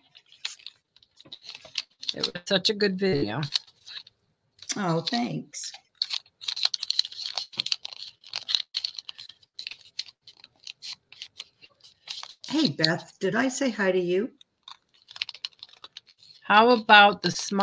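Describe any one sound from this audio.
Paper rustles and crinkles as hands handle it.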